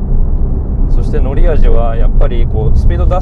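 A man speaks calmly from close by inside a car.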